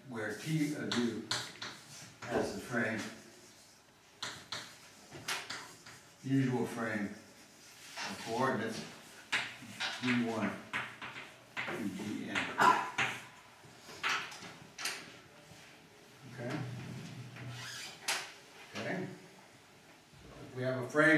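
An elderly man speaks calmly, as if lecturing.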